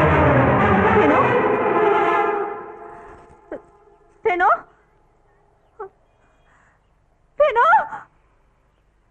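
A woman cries out loudly in distress.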